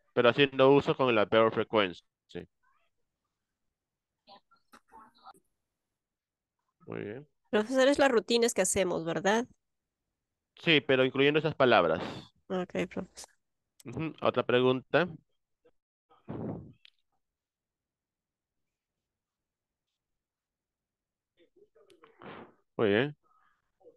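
A man speaks calmly through an online call, pausing between phrases.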